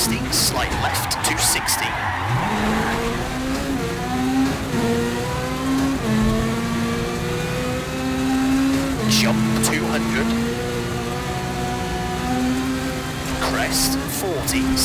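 Gravel rattles and pings against the underside of a car.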